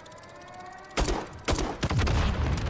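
A rifle fires loud shots in bursts.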